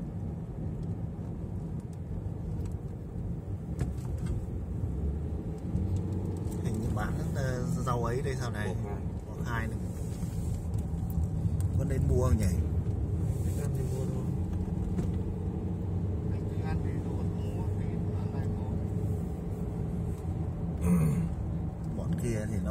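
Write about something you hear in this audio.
Tyres rumble on the road.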